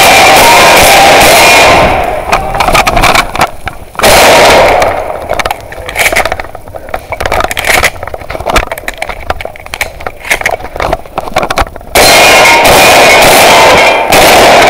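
A gun fires a rapid burst of shots.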